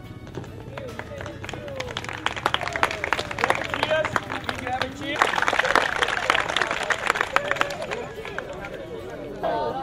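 A crowd of young people claps in rhythm outdoors.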